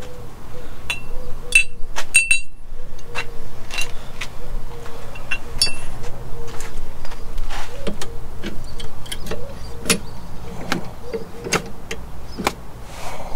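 A man handles metal tool parts that click and clatter.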